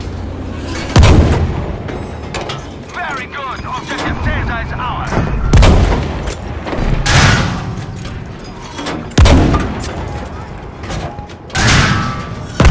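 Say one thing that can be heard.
Shells explode with heavy crashing bangs.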